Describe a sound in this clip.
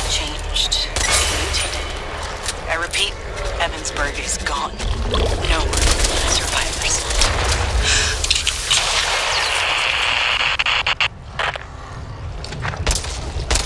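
Pistol shots ring out in quick bursts.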